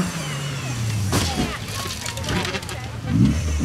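Gravel sprays and crunches under tyres.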